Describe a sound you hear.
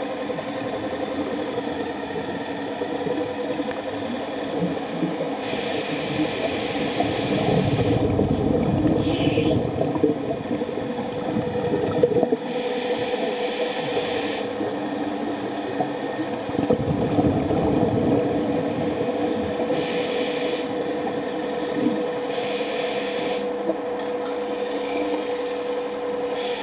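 Thrusters of an underwater robot whir steadily under water.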